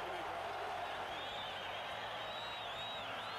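Whistles shriek from the crowd.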